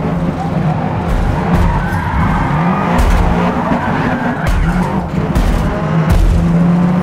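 Tyres screech on the track.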